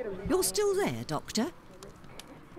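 A woman speaks calmly.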